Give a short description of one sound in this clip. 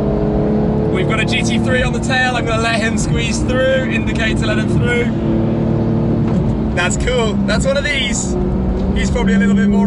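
A man talks with animation inside a loud car.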